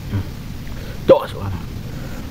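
A young man makes a short vocal sound up close.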